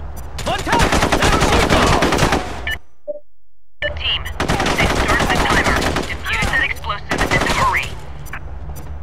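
Rapid rifle gunfire rattles in bursts.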